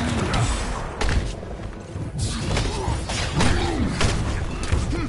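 Heavy punches thud and crash.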